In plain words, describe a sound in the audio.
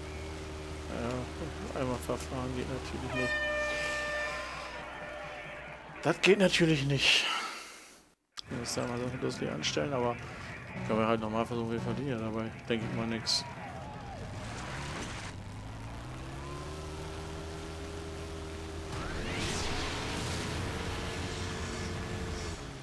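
An off-road buggy engine revs as it races over dirt.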